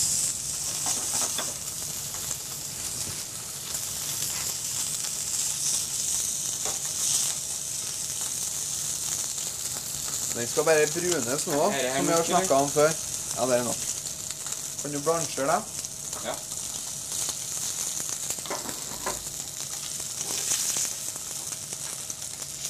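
Food sizzles steadily in a hot pan.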